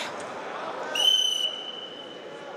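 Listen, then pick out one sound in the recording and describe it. A referee blows a short, sharp whistle.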